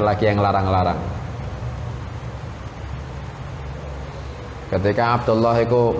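A man speaks calmly into a microphone, heard over a loudspeaker in an echoing room.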